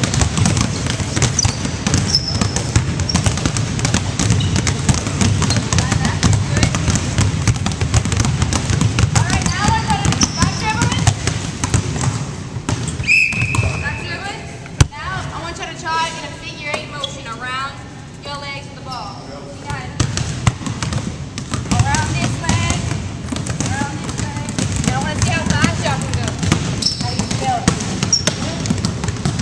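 Several basketballs bounce on a wooden floor in a large echoing hall.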